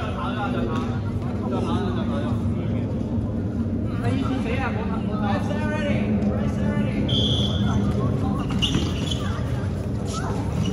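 Young people chatter and call out in a large echoing hall.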